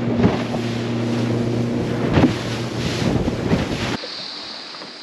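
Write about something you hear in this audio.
Waves splash and spray against a boat's hull.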